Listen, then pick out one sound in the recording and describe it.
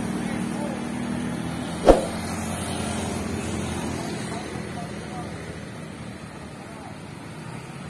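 A heavy truck engine rumbles as the truck drives past up close.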